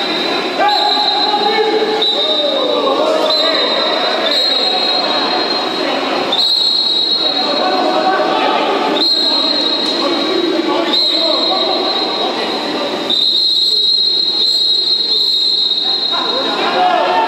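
A referee blows a whistle in short blasts.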